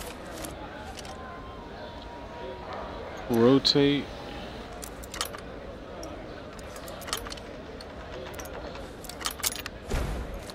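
Metal lock pins click as a lock is picked.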